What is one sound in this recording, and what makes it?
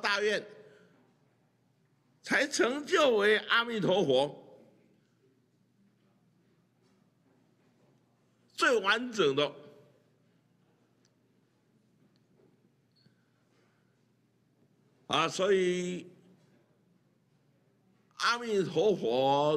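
An elderly man speaks calmly into a microphone in short phrases with long pauses.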